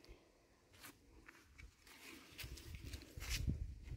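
Leafy vine stems rustle as they are pulled from the ground.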